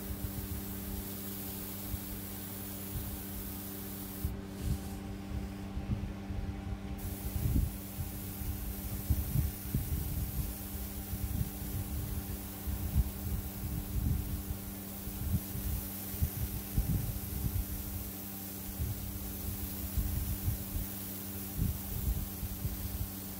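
An airbrush hisses steadily as it sprays paint, pausing briefly.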